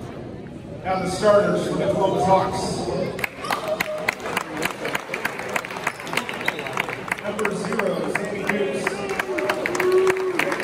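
Young men shout and cheer together in an echoing gym.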